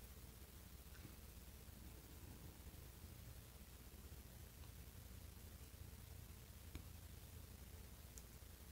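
A watch bezel clicks softly as it is turned.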